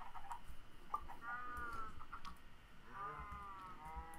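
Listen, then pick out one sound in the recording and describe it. Chickens cluck close by.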